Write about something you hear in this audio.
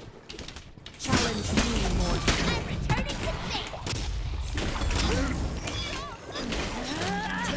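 Clashing blows and crackling magic effects sound in a fast fight.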